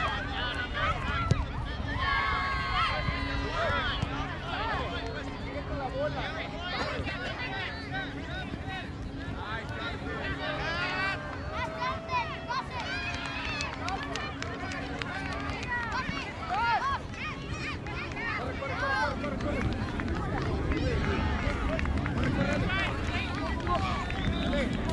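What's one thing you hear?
Children shout far off across an open field.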